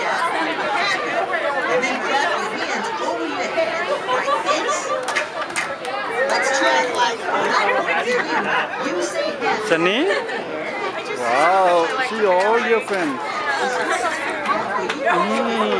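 Children chatter and shout nearby in a noisy room.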